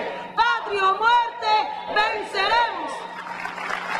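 A woman shouts with passion through a loudspeaker.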